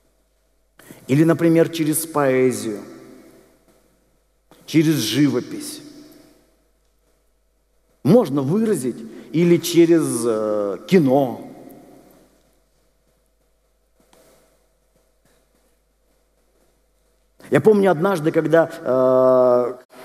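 A middle-aged man speaks with animation through a microphone in an echoing hall.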